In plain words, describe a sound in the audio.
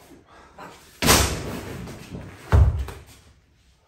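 A heavy stone thuds down onto the floor.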